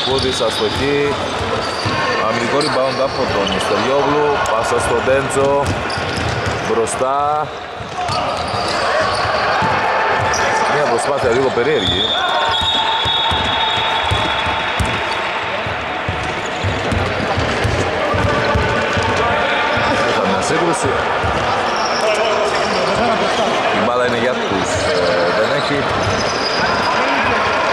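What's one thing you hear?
Men shout and call out to each other in a large echoing gym.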